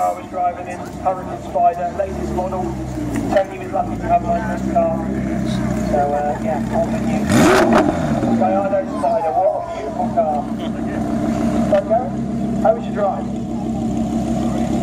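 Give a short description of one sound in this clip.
A sports car engine idles with a deep, throaty rumble.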